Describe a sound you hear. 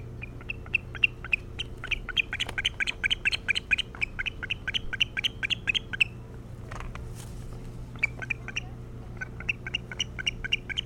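An osprey gives rapid, high-pitched chirping calls.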